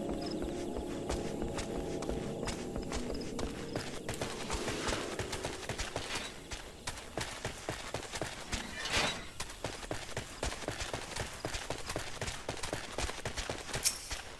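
Footsteps patter quickly on the ground.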